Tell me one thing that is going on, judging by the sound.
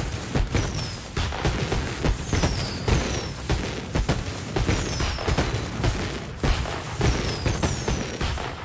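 Fireworks whistle as they rise.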